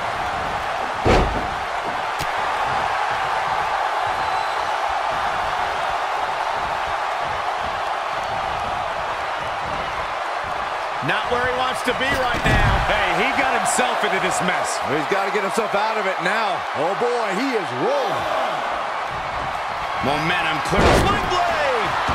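A body slams hard onto a wrestling ring mat with a heavy thud.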